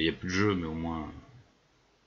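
A middle-aged man talks into a close microphone.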